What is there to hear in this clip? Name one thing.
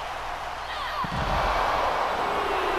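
Bodies thud heavily onto a hard floor.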